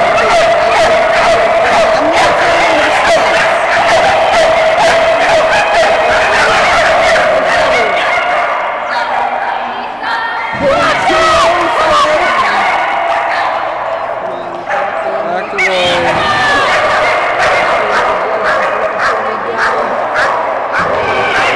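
Many dogs bark excitedly in a large echoing hall.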